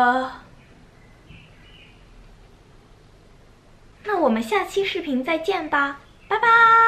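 A young woman speaks brightly and close to a microphone.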